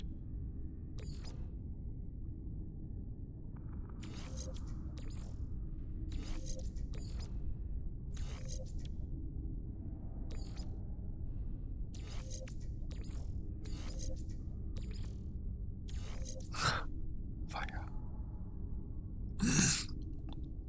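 Short electronic whooshes and clicks sound repeatedly as menu items are selected.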